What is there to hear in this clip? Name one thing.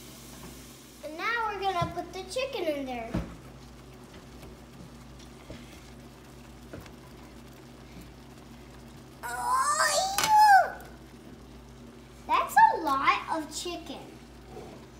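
A young boy talks excitedly close by, in short bursts.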